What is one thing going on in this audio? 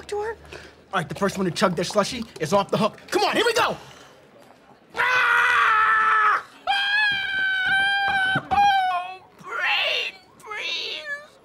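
A man exclaims loudly and dramatically, close by.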